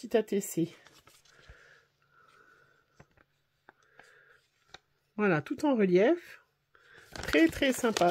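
Paper rustles as an envelope and a card are handled.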